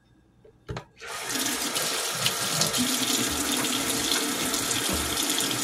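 Water runs steadily from a tap.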